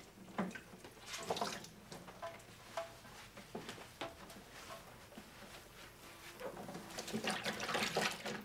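Dishes and utensils clink and clatter at a sink.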